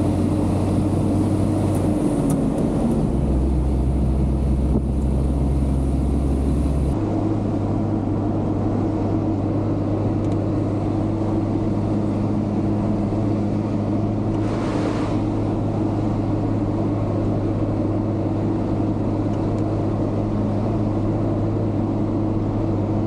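A truck engine drones steadily from inside the cab, shifting pitch as the gears change.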